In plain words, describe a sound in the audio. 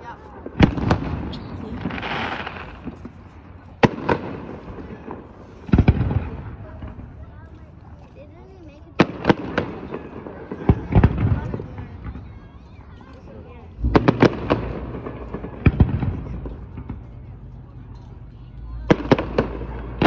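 Fireworks stars crackle and fizz after the bursts.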